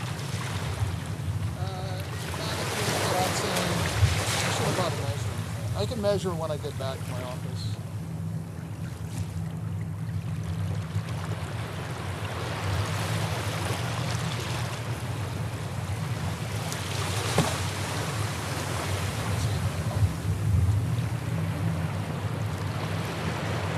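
Waves break and wash up on a beach.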